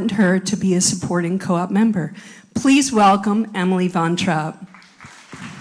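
A middle-aged woman speaks calmly into a microphone over a loudspeaker.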